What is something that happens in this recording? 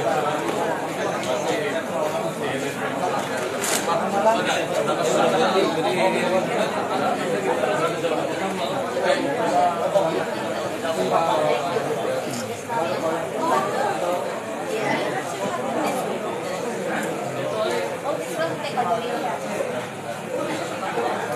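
A crowd of people chatter in the background.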